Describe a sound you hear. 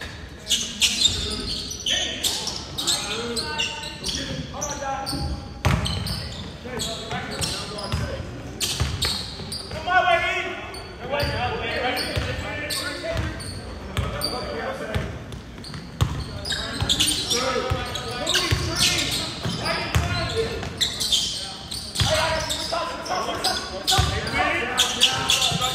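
Sneakers squeak on the court in a large echoing gym.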